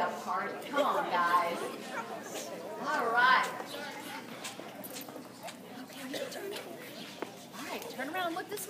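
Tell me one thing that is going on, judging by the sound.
Children's voices chatter and call out outdoors.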